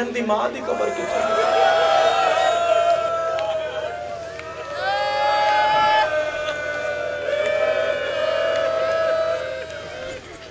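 A young man chants mournfully through a microphone.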